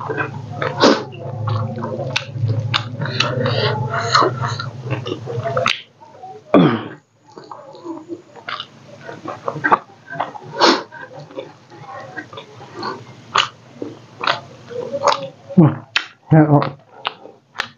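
A man eats with his hands, chewing and smacking close to a microphone.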